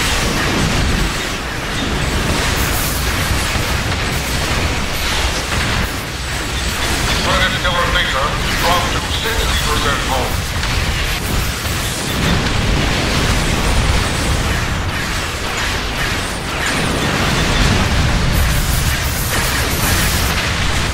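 Energy beams crackle and hum in quick, noisy bursts.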